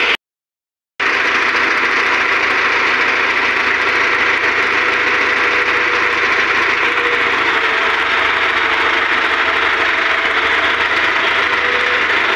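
A tractor engine runs with a steady rumble.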